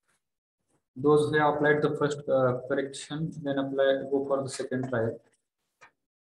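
A man explains calmly, heard through a microphone on an online call.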